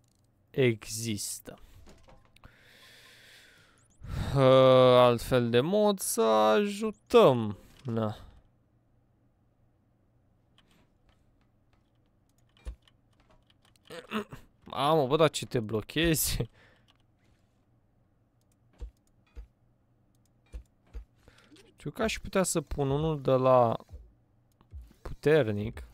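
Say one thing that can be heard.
A young man talks with animation, close to a microphone.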